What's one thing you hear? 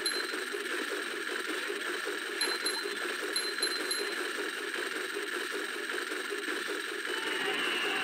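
Looping video game music plays steadily.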